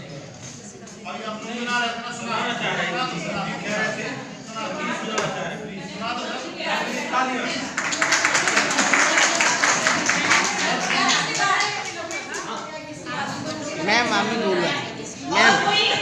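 A woman talks nearby with animation in an echoing room.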